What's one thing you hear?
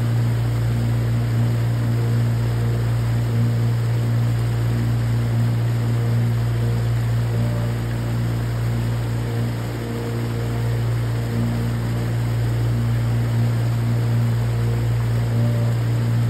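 A small creek waterfall splashes over rock ledges into a churning pool.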